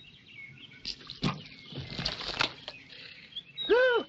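Water splashes onto the ground.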